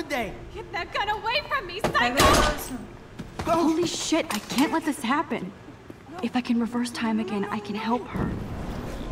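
A young woman speaks close to a microphone with feeling.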